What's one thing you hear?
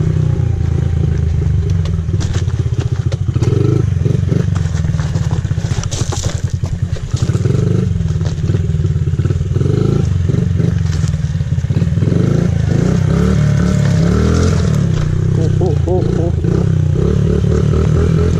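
A small motorbike engine putters and revs loudly up close.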